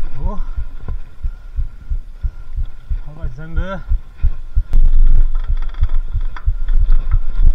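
Bicycle tyres rumble and bump over a rough dirt trail.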